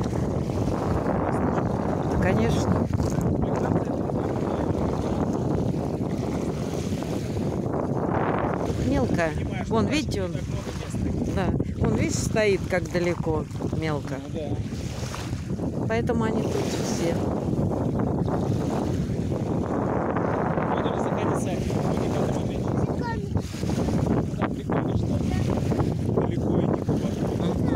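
Small waves lap gently against a pebbly shore.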